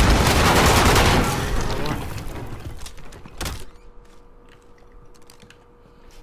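A magazine clicks into a rifle during a reload.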